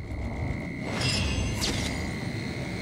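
A bright magical shimmer rings out.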